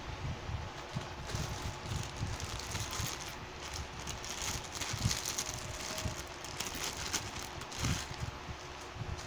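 Plastic wrapping rustles.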